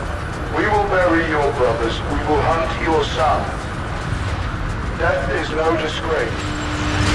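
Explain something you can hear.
A man speaks calmly over a radio link.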